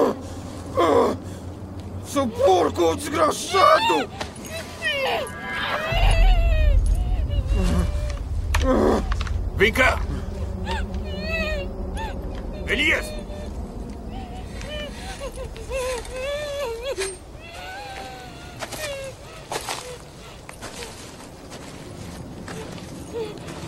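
A young man groans, muffled through a gag.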